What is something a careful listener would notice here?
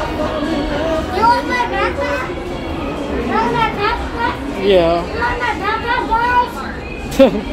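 A young child talks and babbles nearby.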